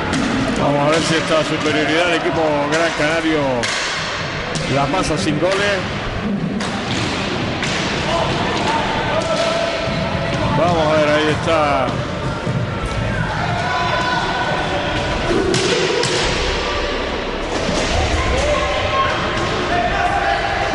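Hockey sticks clack against a ball in an echoing hall.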